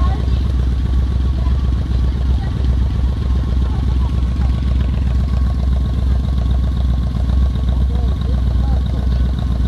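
Motorcycle engines idle with a deep, steady rumble.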